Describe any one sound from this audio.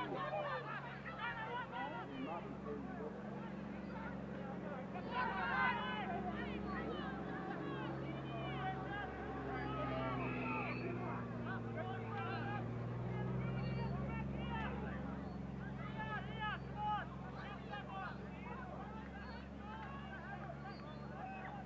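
Spectators shout and cheer outdoors at a distance.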